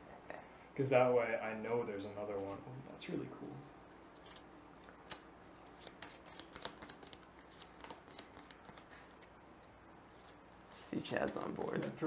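Playing cards shuffle and tap softly on a table.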